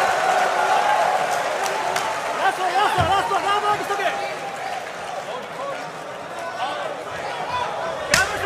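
A crowd cheers and roars in a large hall.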